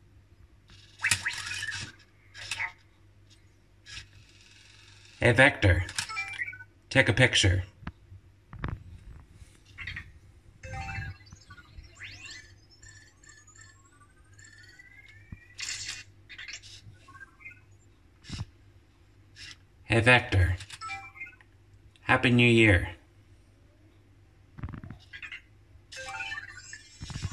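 A small robot chirps and warbles in short electronic bursts.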